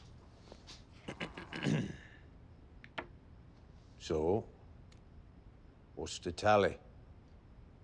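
A middle-aged man speaks calmly and firmly nearby.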